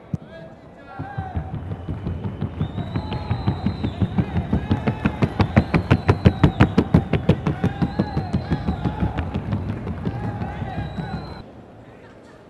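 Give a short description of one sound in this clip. A horse's hooves drum in a fast, even patter on a hollow board.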